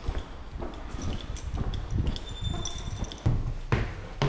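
Footsteps tap on a hard floor in an echoing hallway.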